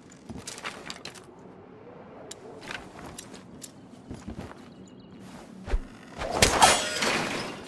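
Footsteps thud softly on wooden planks.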